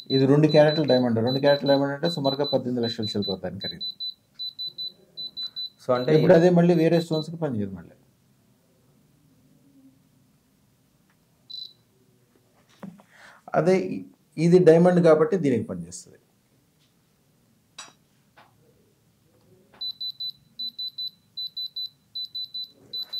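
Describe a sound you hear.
An electronic tester beeps in quick, repeated short pips.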